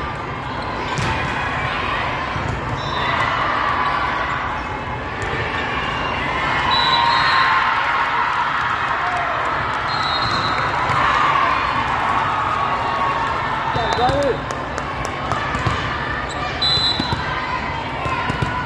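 Players and spectators call out and cheer in a large echoing hall.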